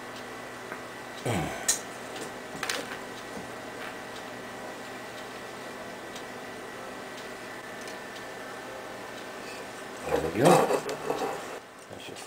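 A thin wooden stick rubs through a hole in a tin can.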